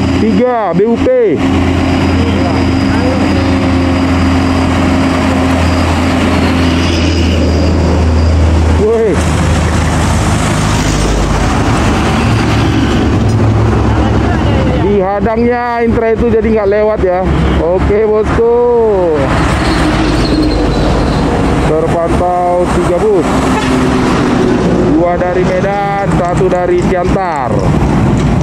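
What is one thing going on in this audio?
Heavy trucks and buses rumble past with deep engine noise.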